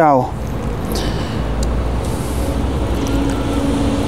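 Liquid trickles as it is poured from a small cup.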